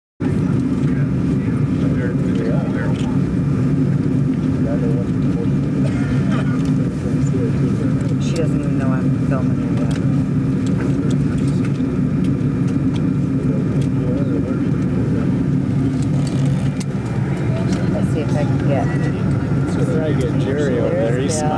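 A steady low roar of jet engines fills the air.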